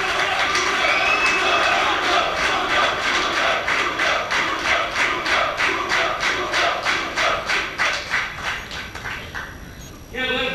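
A large crowd claps in a fast, steady rhythm in a big hall.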